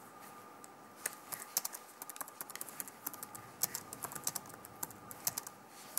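Keys on a computer keyboard click quickly as someone types.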